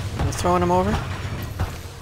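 Heavy armoured footsteps thud on a metal floor.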